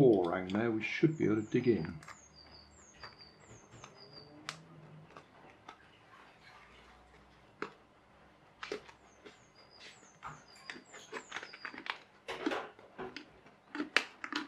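A knife cuts into a plastic bottle with sharp scratching clicks.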